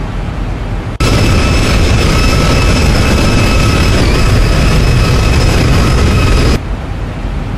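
Jet engines roar with a steady high whine as an airliner flies past.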